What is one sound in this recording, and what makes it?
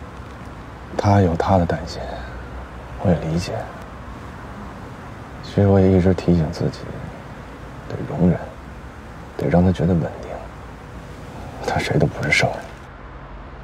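A man speaks quietly and calmly nearby.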